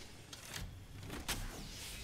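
A shield recharge device hums as it charges.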